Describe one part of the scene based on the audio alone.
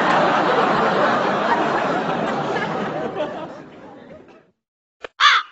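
Young men shout excitedly nearby.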